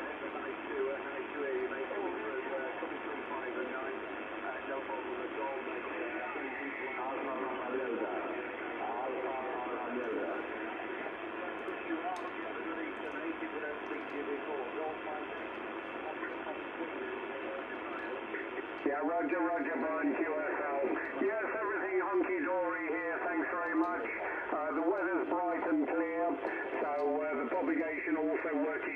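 A shortwave radio hisses and crackles through a small loudspeaker.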